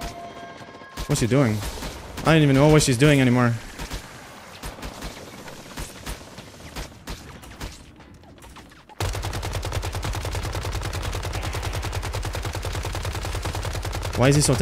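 A young man speaks with animation into a close microphone.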